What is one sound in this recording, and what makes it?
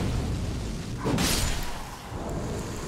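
A sword clangs against a shield.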